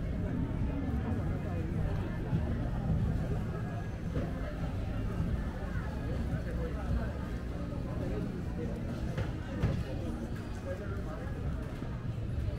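A crowd murmurs and chatters nearby in a busy outdoor street.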